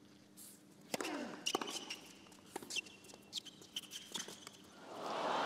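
Tennis balls are struck sharply back and forth.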